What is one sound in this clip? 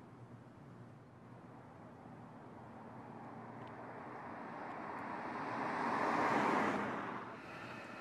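A car approaches and rushes past close by with a rising whoosh.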